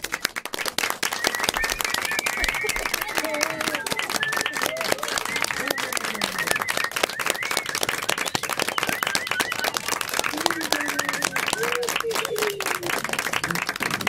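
People cheer and call out over the applause.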